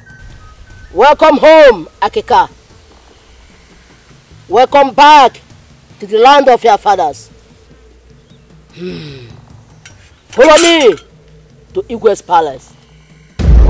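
An elderly woman shouts and chants forcefully close by.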